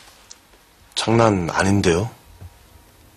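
A young man speaks calmly, close by.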